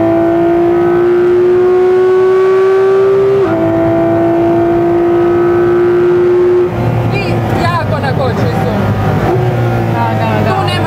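A car engine roars at high revs, climbing in pitch and dropping with each gear change.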